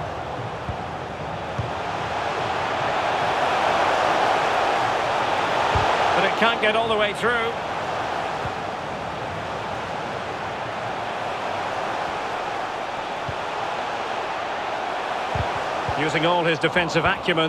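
A large stadium crowd cheers and roars steadily.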